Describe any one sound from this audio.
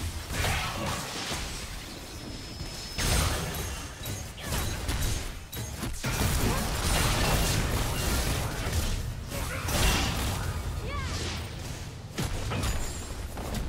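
Magic spells whoosh and explode in a hectic fight.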